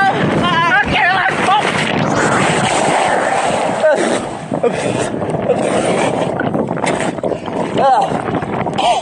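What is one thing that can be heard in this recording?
Water rushes and splashes loudly around a tube pulled across a lake.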